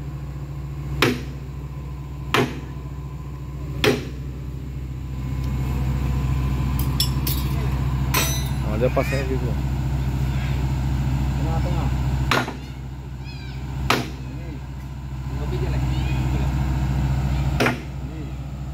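Metal clanks sharply now and then.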